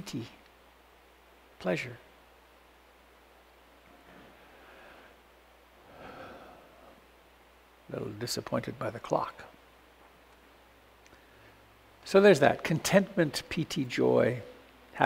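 An older man speaks calmly and thoughtfully, close to a microphone, with long pauses.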